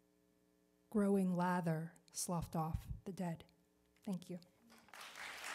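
A woman speaks calmly into a microphone in a large hall.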